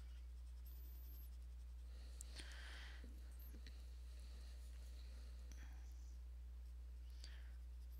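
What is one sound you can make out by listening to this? A coloured pencil scratches softly on paper.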